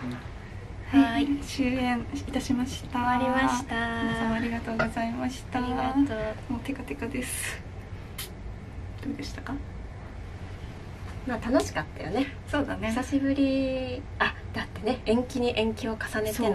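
A second young woman talks and laughs close by.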